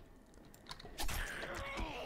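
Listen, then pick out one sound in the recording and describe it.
A knife slashes into flesh with a wet thud.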